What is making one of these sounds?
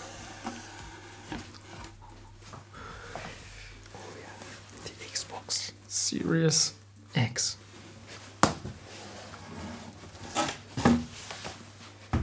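Cardboard rustles and scrapes as a box is rummaged through.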